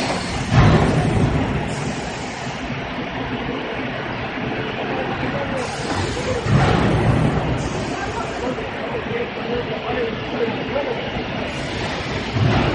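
Plastic sheets rustle as they are handled.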